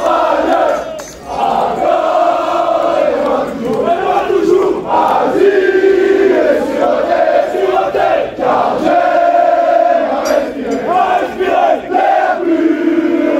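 A crowd of young men sings loudly together outdoors.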